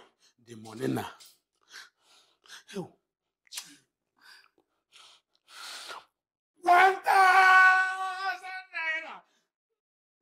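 A middle-aged man speaks with strain, then shouts loudly.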